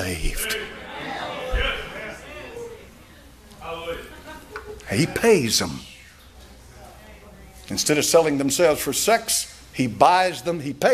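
An elderly man preaches with animation through a microphone.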